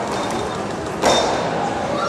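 A gymnast's feet land with a thud on a balance beam in a large echoing hall.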